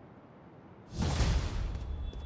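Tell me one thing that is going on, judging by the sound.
A bright game chime rings out.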